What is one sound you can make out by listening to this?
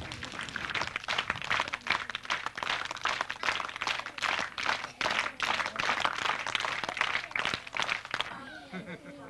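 Children clap their hands rhythmically close by.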